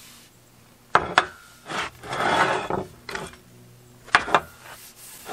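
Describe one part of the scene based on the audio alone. Wooden axe handles knock together.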